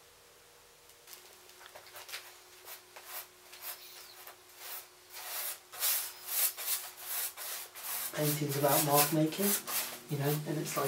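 A palette knife scrapes paint across a canvas in short, rasping strokes.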